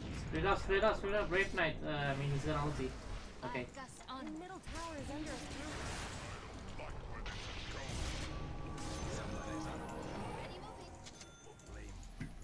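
Magic spells whoosh and crackle during a fantasy battle.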